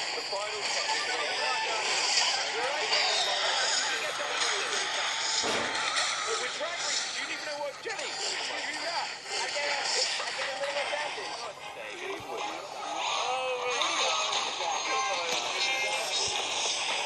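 Game sound effects of small troops clashing and towers firing pop and clatter continuously.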